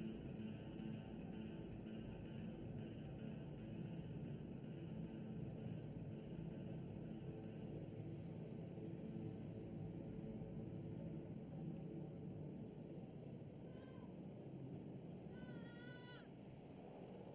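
A car engine rumbles steadily as the car drives.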